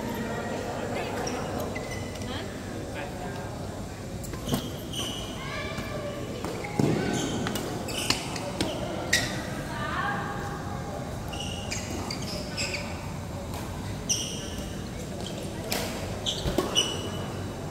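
Badminton rackets strike a shuttlecock with sharp pops.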